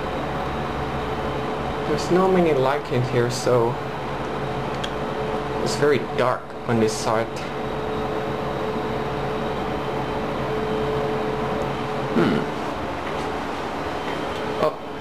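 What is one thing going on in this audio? An elevator motor hums steadily as a drive wheel turns.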